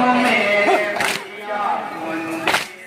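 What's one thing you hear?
A crowd of men beat their chests in unison.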